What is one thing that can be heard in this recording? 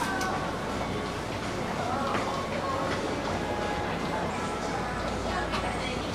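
Footsteps tap on a hard floor in an echoing indoor passage.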